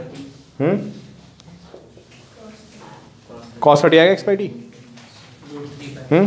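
A man speaks nearby in a lecturing tone, with short pauses.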